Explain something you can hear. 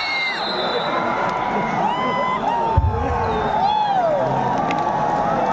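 Spectators whistle shrilly.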